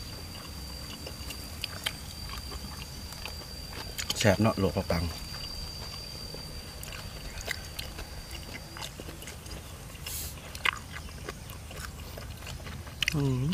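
A young man chews food close by.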